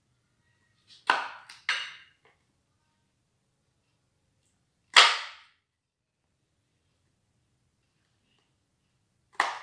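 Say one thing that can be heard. A knife chops down onto a wooden cutting board.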